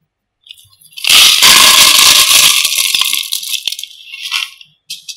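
Gravel pours from a bucket into a plastic pot with a rattling rush.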